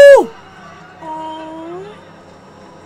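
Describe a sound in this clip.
A woman gasps.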